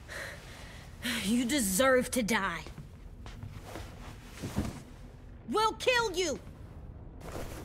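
A young man speaks coldly and threateningly.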